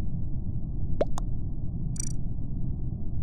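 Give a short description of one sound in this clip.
Short electronic chat chimes sound twice.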